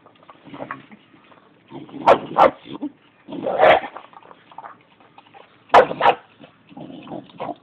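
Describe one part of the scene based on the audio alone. A dog eats noisily from a metal bowl, chewing and crunching close by.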